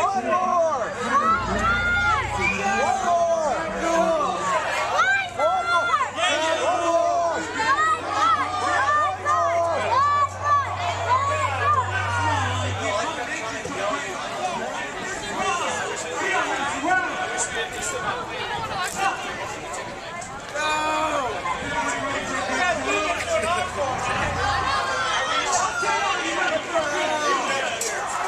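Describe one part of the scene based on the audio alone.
A band plays amplified music on an outdoor stage.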